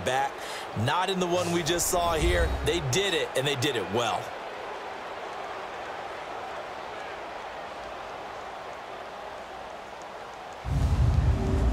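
A large crowd murmurs in a stadium.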